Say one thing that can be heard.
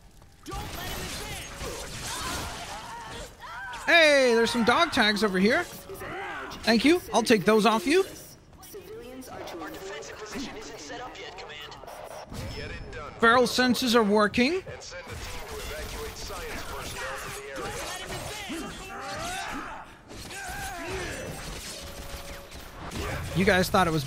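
Metal claws slash and clang during a fight.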